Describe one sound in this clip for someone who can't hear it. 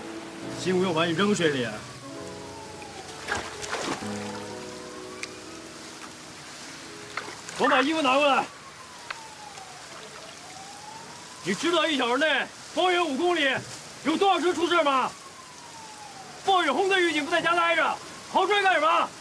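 A young man speaks sharply and with urgency, close by.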